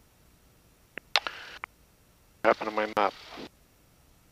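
A man speaks through an aircraft headset intercom.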